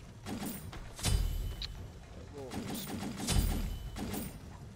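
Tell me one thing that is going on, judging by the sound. A game menu plays a short purchase sound effect as items are bought.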